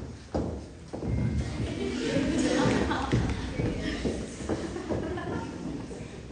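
A group of young women sings together.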